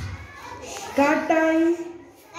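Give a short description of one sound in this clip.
A young child calls out loudly in a high voice.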